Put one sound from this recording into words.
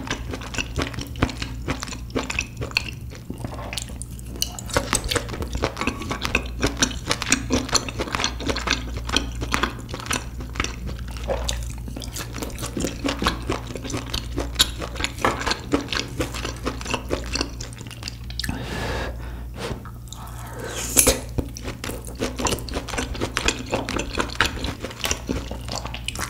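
Chopsticks tap and click against a grill.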